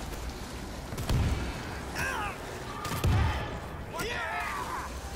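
A gun fires in loud, booming shots.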